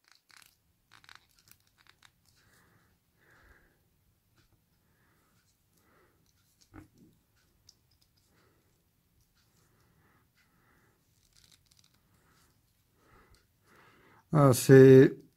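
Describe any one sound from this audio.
Small plastic parts click softly as they are fitted onto a toy figure.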